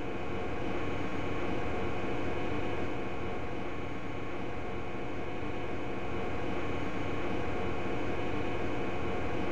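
An electric train hums steadily while standing still.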